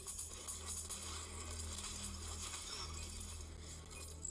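A game's automatic gun fires in rapid bursts.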